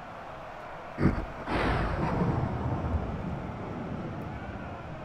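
A loud blast booms, followed by a rumbling roar that slowly fades.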